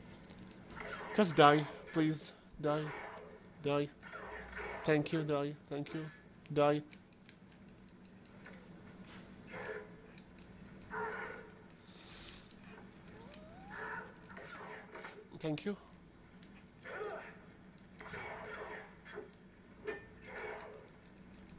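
Sword blows and clashes ring out from a video game through a television speaker.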